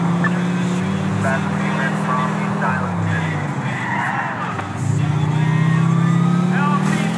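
A pickup truck's engine hums steadily as it drives along.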